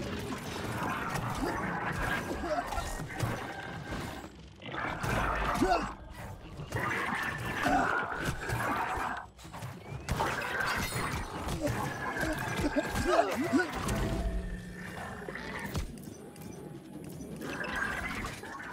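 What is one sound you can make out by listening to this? Weapons clash and magic blasts in a fast fight.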